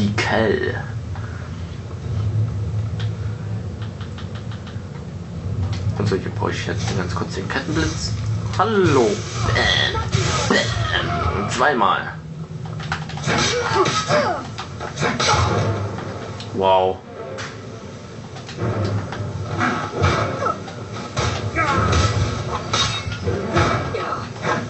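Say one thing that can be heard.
Battle sounds with crackling magic and clashing blows play through a television speaker.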